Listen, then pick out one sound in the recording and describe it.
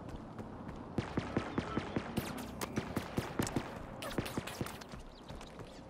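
Quick footsteps thud and crunch on dirt and grass.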